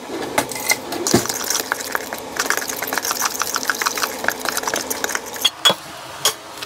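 A fork whisks and scrapes inside a bowl.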